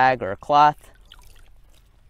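Water drips from a wet cloth into a bucket.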